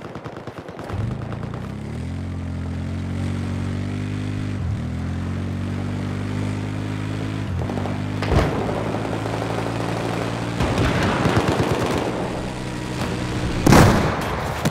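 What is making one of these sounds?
An engine revs and hums steadily as a quad bike drives along.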